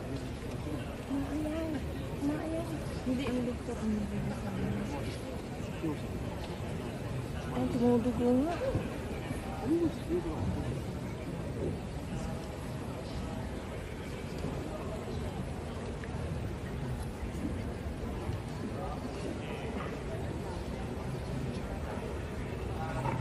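A man speaks into a microphone, heard over a loudspeaker in a large echoing hall.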